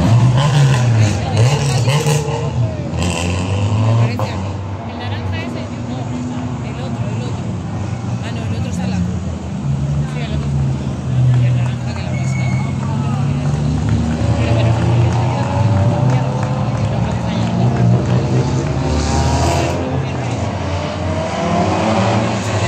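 Rally car engines roar and rev loudly as the cars climb through a hairpin bend.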